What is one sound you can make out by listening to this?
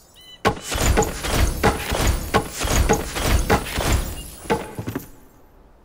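Wooden blocks knock into place again and again in quick succession.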